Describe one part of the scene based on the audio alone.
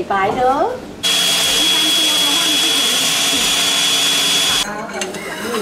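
A grinding machine whirs loudly with a high steady whine.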